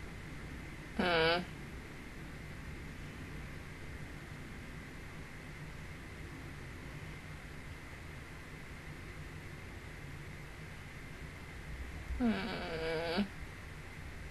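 A harmonica plays short, bending notes close to a microphone.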